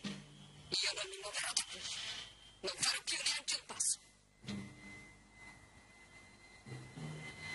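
A woman speaks tensely, close by.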